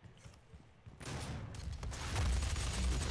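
A gun fires rapidly.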